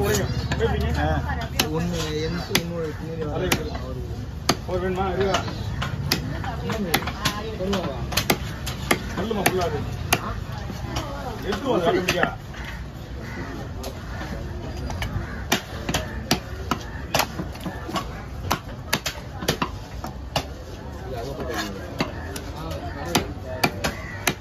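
A heavy cleaver chops on a wooden block with sharp knocks.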